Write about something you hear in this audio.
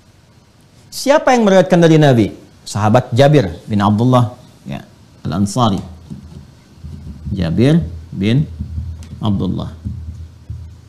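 A man speaks calmly and with emphasis, close to a microphone.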